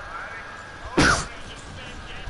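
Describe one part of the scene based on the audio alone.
A loud blast bursts once.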